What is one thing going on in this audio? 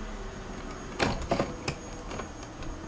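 A gear shifter clicks into place.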